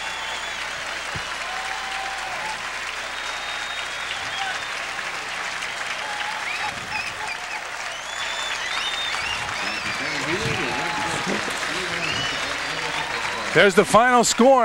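A large stadium crowd cheers and applauds.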